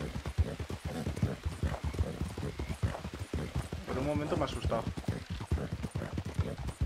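A horse's hooves thud on a dirt trail.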